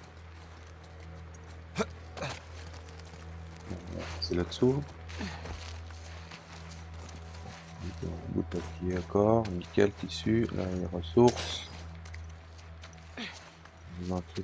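Footsteps scuff and crunch over debris on a hard floor.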